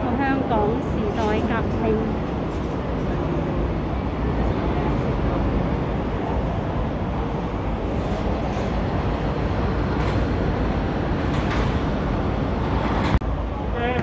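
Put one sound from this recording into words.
Cars drive past on a busy street.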